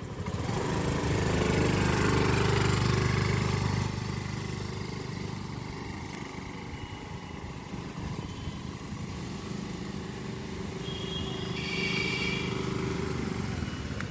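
A scooter engine hums steadily nearby.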